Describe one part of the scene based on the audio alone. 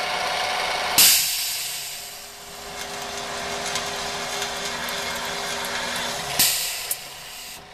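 Compressed air hisses in short bursts.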